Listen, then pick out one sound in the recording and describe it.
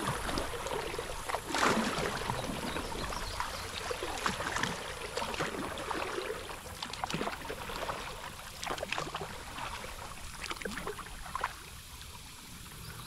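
Wind blows across the open water.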